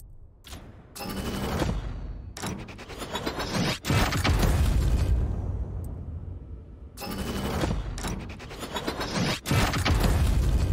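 A case unlocks and opens with a deep rumbling whoosh.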